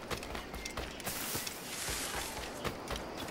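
Leaves rustle as someone pushes through dense bushes.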